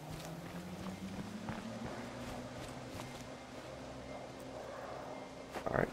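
Footsteps run over dry ground.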